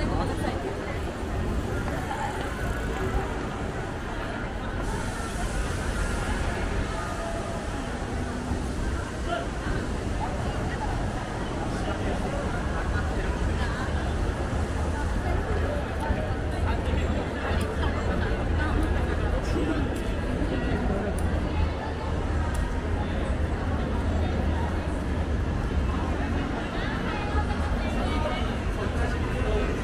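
Footsteps of many people walk on pavement.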